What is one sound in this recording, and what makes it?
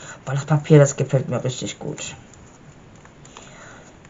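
A stiff paper page turns over with a soft rustle.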